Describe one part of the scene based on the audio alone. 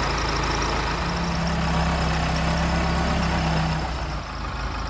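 A tractor engine revs up and then settles.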